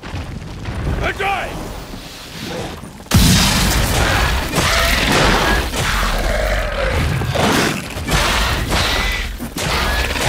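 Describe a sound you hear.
A large creature screeches.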